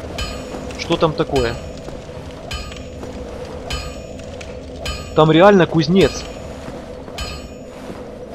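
Heavy armoured footsteps clank on stone steps at an even pace.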